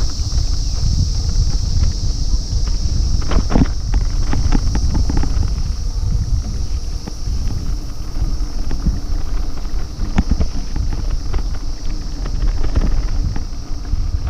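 Wind buffets the microphone with a low rumble.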